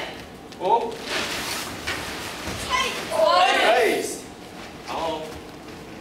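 Children shout together in a large echoing room.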